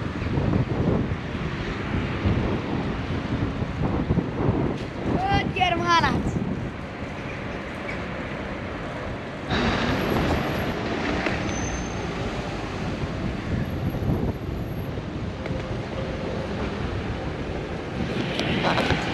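Wind rushes and rumbles across the microphone while riding.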